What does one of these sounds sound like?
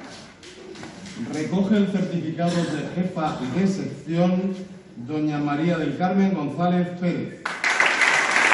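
A man speaks calmly into a microphone over a loudspeaker.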